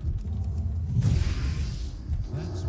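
A blade swooshes through the air.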